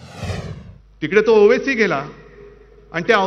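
A man speaks forcefully into a microphone.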